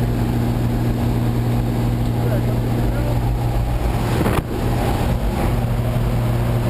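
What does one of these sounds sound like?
An aircraft engine drones loudly and steadily.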